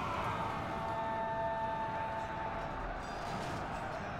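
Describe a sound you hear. A battle rages in the distance.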